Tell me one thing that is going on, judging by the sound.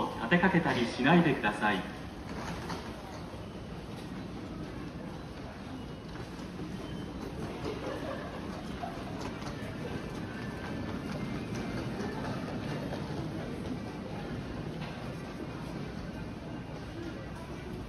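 A low steady murmur fills a large echoing hall.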